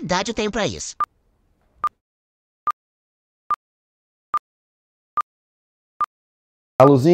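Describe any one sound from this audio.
A timer beeps once every second, in short high beeps.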